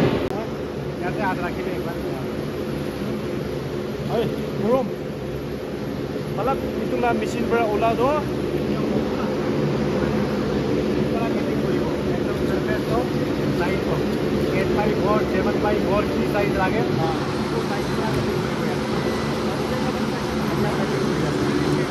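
A man speaks with animation close by.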